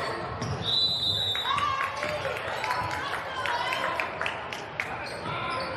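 Spectators murmur and call out in the background.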